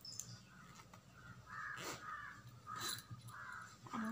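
A zipper rasps open.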